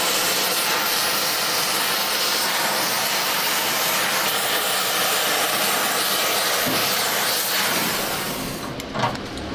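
A cutting torch roars and hisses steadily.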